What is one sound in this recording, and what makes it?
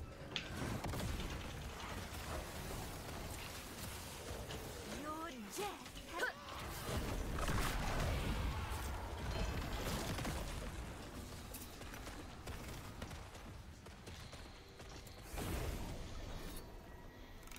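Game spell blasts and explosions crackle and boom.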